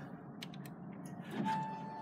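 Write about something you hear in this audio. A button clicks as a finger presses it.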